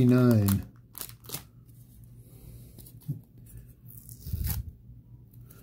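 A paper sticker peels away with a soft tearing sound.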